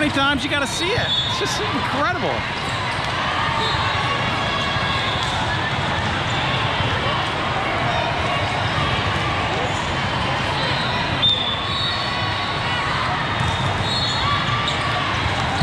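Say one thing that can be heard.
A crowd of spectators chatters steadily in a large echoing hall.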